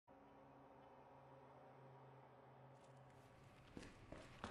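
A low steady hum drones.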